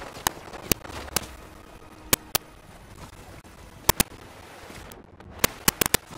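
Water splashes as a figure wades through a shallow stream.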